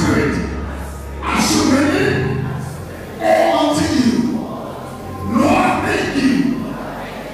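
A man preaches with fervour through a microphone in a large echoing hall.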